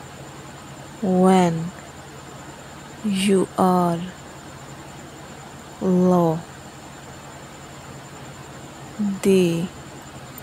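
A man speaks nearby in short, calm bursts.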